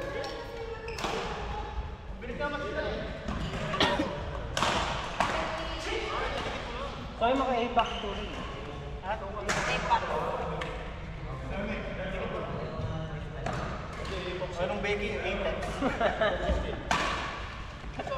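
Badminton rackets smack a shuttlecock now and then in a large echoing hall.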